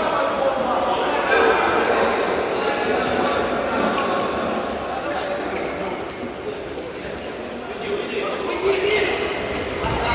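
A crowd of spectators chatters and calls out in an echoing indoor hall.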